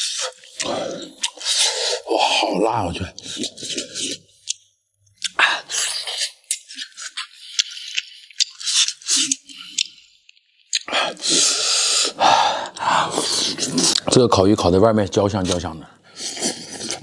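A young man talks with animation close to the microphone.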